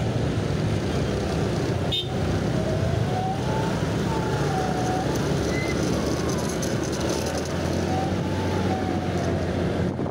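A motorcycle engine revs up as the ride gets going.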